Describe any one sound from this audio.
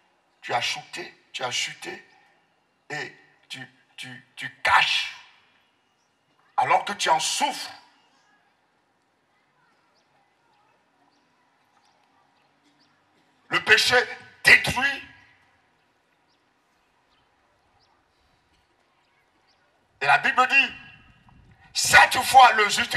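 A man speaks with animation through a microphone and loudspeakers, with long pauses.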